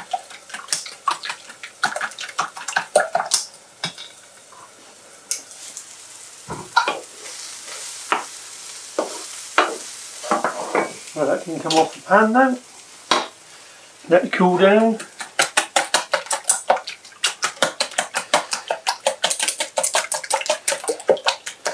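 A whisk clinks rapidly against a metal bowl.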